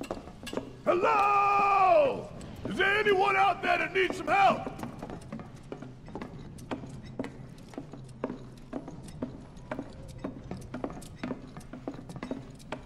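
Heavy footsteps clank steadily on a hard floor.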